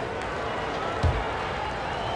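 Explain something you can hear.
A basketball bounces once on a wooden floor.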